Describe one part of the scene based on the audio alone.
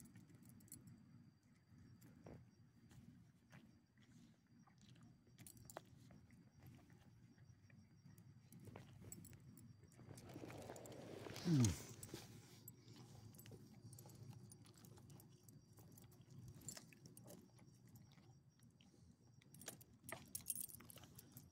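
Dog tags jingle faintly.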